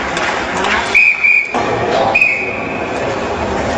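A referee's whistle blows twice in short blasts.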